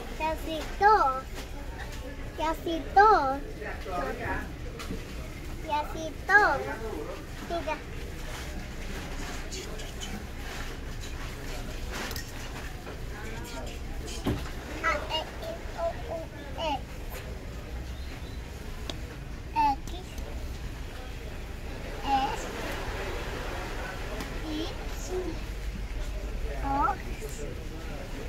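A young boy speaks nearby.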